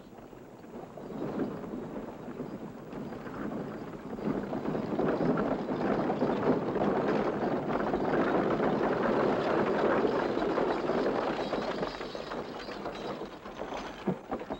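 A horse-drawn wagon rattles and clatters along.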